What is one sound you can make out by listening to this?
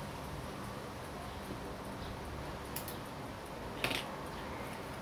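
Metal tweezers click and scrape against a small watch movement.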